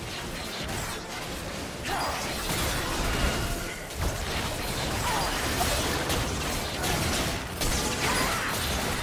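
Magic blasts and hits crackle and whoosh in a fast, busy fight.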